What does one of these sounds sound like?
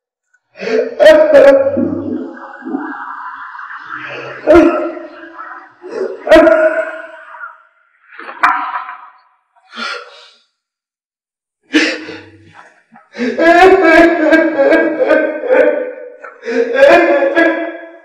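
A middle-aged woman groans and wails loudly nearby.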